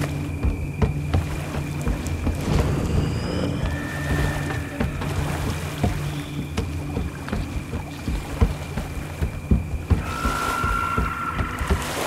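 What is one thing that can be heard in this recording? Footsteps clank on a metal bridge.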